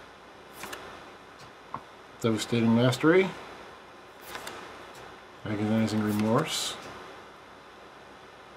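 Playing cards slide and tap softly against each other.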